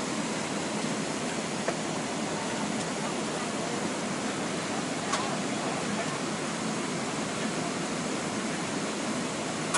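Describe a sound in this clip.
A steady jet engine roar fills an aircraft cabin.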